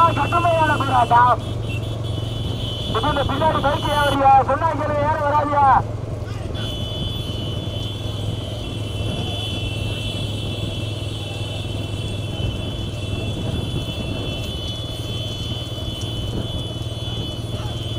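Motorcycle engines hum steadily close by.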